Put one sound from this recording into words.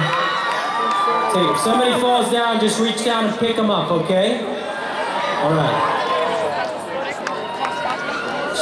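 A band plays loudly with drums and guitars.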